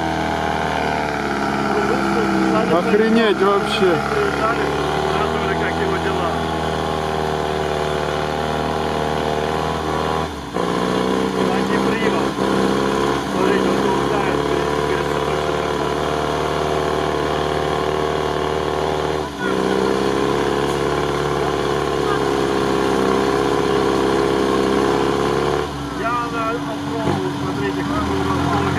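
A heavy truck engine roars and labours loudly.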